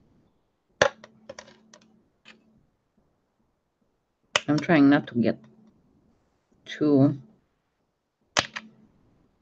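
Small objects tap and click on a hard table.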